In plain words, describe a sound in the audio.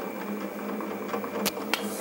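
A drill bit bores into metal.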